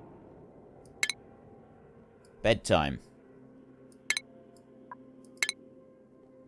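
Short electronic interface clicks sound now and then.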